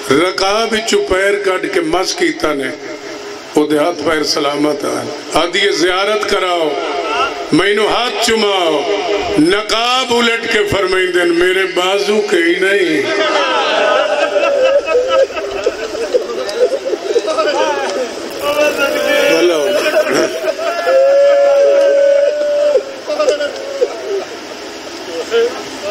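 A man recites with passion into a microphone, his voice loud and echoing through a loudspeaker.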